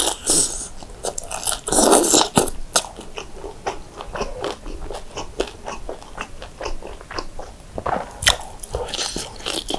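A young man chews and smacks food wetly.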